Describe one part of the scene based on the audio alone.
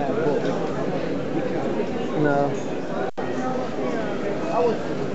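A crowd of men and women chatters nearby, outdoors.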